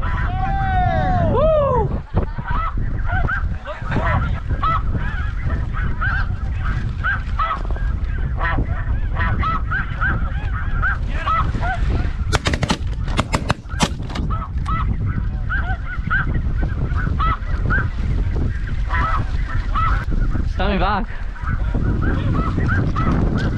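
A flock of snow geese calls overhead.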